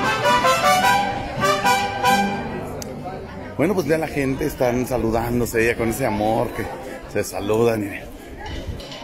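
A group of men play stringed instruments outdoors.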